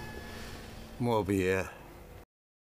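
An elderly man speaks calmly and gravely.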